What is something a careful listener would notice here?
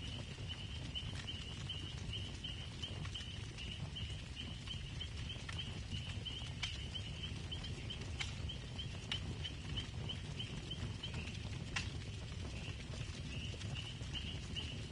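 A campfire crackles and pops steadily.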